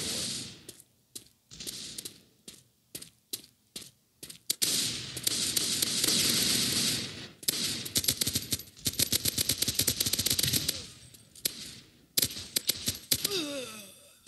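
A rifle fires in rapid bursts of sharp shots.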